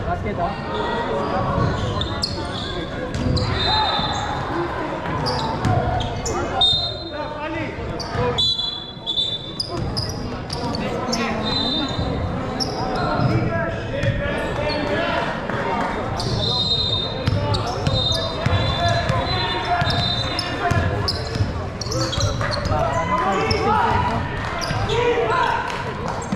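Young players shout and call out to each other across the court.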